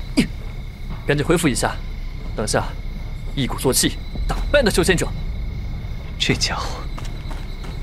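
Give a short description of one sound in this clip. A young man speaks with determination.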